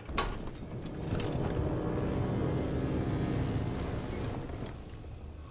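A heavy gun fires with a loud roar.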